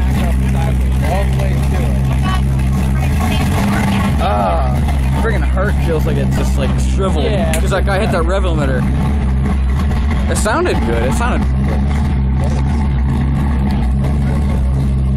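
A pickup truck with a loud exhaust idles with a deep rumble.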